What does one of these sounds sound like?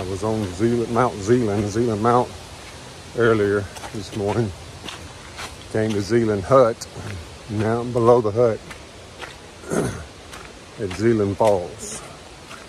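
A middle-aged man talks calmly close to the microphone.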